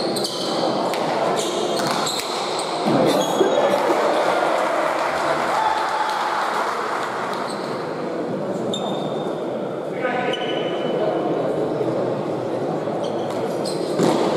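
Sneakers squeak sharply on the hard floor.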